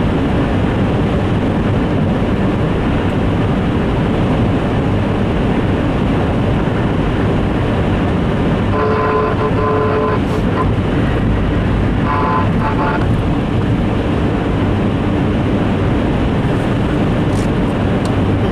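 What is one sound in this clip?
A car engine hums steadily as it drives along at speed.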